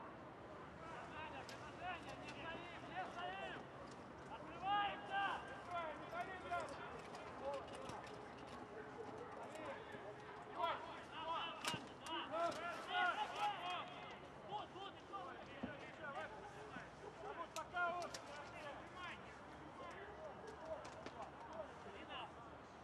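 Young men shout to one another across an open field.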